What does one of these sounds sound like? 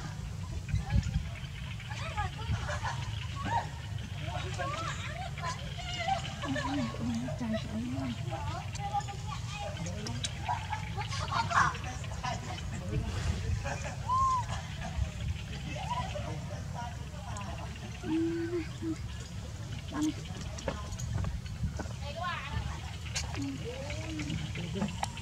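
A baby monkey squeaks and whimpers close by.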